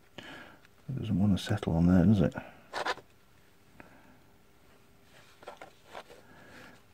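Metal parts of a power tool click and scrape as it is taken apart.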